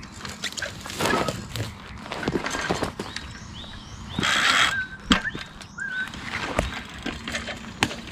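Bicycle tyres roll over dry leaves and twigs.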